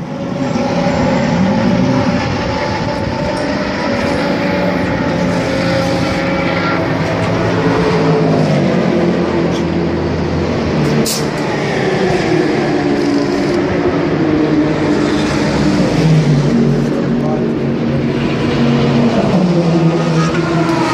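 A GT3 race car engine runs in the pit lane.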